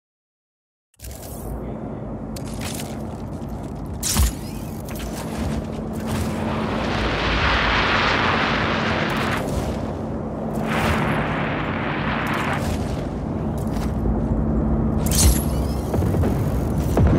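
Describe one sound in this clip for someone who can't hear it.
Wind rushes loudly past a gliding wingsuit flyer.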